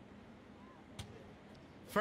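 A ball bounces once on a hard floor in a large hall.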